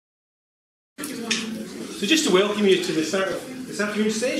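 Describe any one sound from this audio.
An elderly man speaks calmly to an audience.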